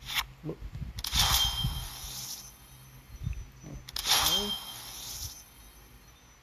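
A sparkling magical whoosh plays as a game card is powered up.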